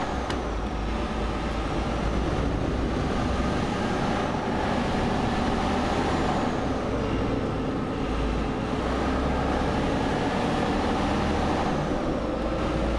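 A truck engine hums steadily from inside the cab.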